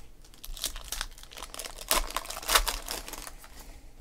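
A foil pack rips open.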